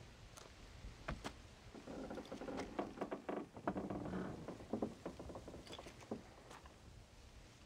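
Wooden planks knock and creak.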